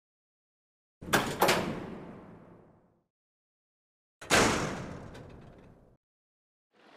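A heavy metal door bangs and rings out.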